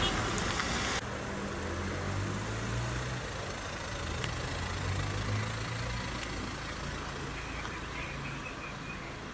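Vehicle engines idle steadily nearby.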